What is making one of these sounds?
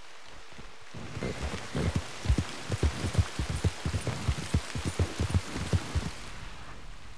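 A horse's hooves thud quickly on soft ground.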